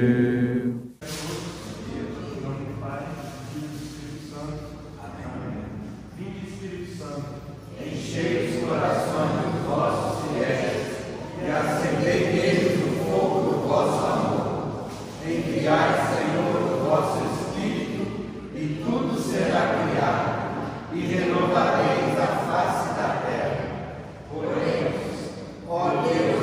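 A group of men and women pray aloud together in a large echoing hall.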